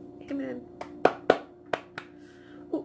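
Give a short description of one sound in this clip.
A woman claps her hands.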